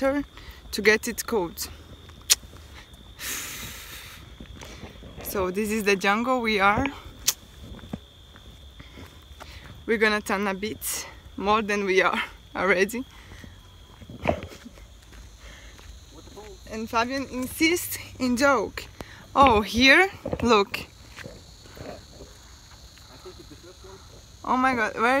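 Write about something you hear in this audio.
A young woman talks with animation, close to the microphone, outdoors.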